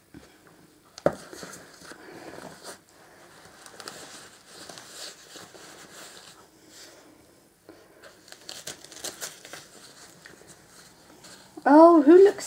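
Fabric rustles as a dog coat is pulled and adjusted.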